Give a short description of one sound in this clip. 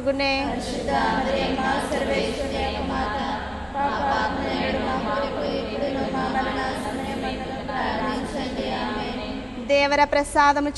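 A group of women sing a slow hymn together.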